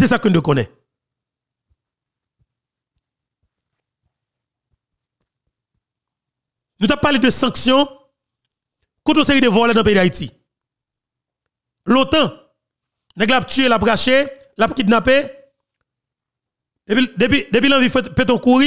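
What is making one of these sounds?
A man speaks close into a microphone in short animated bursts.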